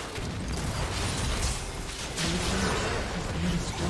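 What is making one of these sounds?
A tower crumbles with a heavy crash.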